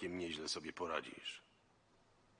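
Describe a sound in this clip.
A man speaks into a close microphone.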